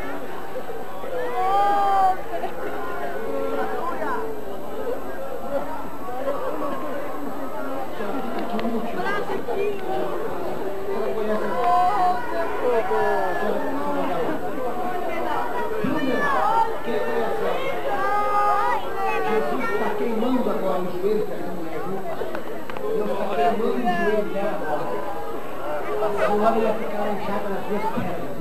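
A crowd of men and women chatters and calls out all around, close by.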